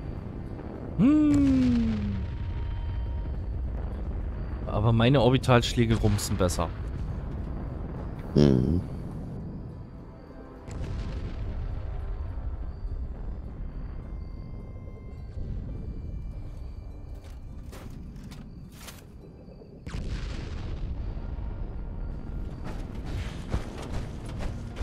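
Loud explosions boom and rumble one after another.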